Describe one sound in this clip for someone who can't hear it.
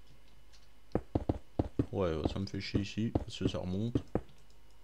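Stone blocks are set down with dull knocks.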